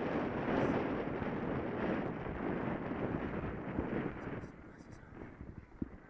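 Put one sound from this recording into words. Wind rumbles and buffets against the microphone outdoors, easing off toward the end.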